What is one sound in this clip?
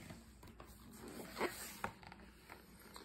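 Book pages rustle and flap.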